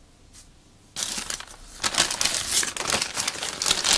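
A plastic mailing bag crinkles and rustles as hands handle it.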